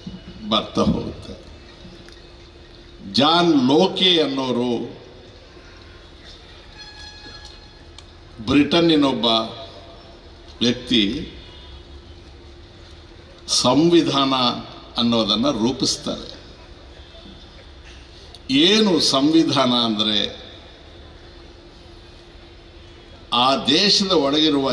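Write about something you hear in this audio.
An elderly man speaks forcefully into a microphone over loudspeakers, in bursts with pauses.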